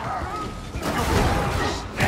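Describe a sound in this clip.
An explosion bursts with a loud crackle.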